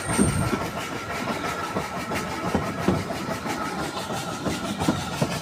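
A train rattles and clacks steadily along the track.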